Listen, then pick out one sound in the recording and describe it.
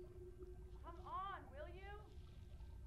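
A man calls out from a distance.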